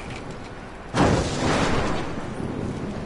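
A heavy metal door slides open with a loud whoosh.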